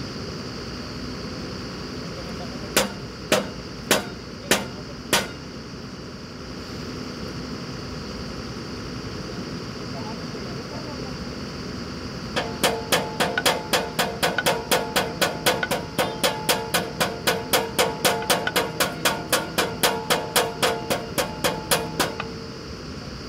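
A drilling rig's engine hums steadily outdoors.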